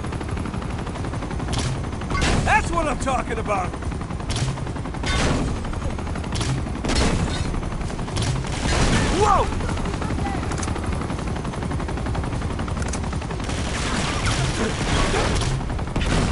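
A helicopter's rotor thumps steadily overhead.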